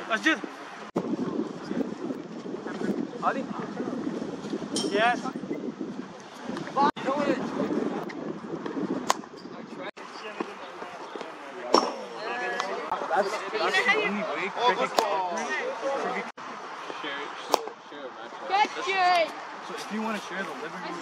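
Young men and boys talk and call out nearby, outdoors.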